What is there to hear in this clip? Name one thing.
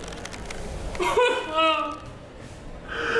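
A man groans or laughs in strain close by.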